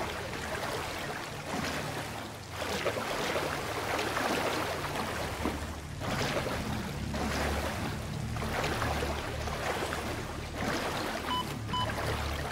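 Water splashes and swirls in rhythmic bursts as a swimmer strokes through it.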